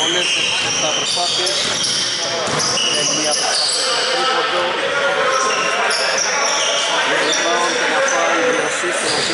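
Basketball shoes squeak on a hardwood court in an echoing gym.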